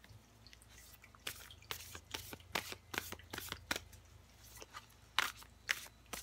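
Playing cards riffle and flick as a deck is shuffled by hand.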